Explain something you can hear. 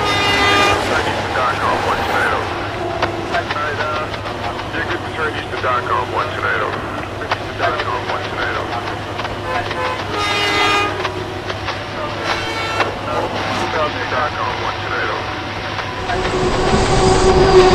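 A crossing bell rings in a steady rhythm.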